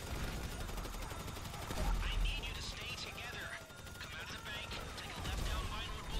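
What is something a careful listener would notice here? Rapid gunshots crack loudly.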